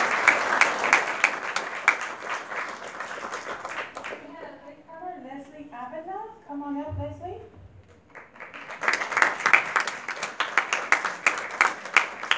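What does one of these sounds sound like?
An audience applauds in an echoing hall.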